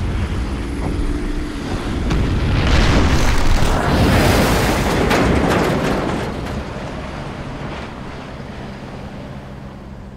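Waves slosh on the sea.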